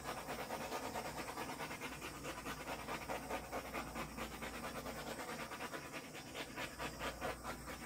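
A cloth rubs and squeaks across a smooth surface.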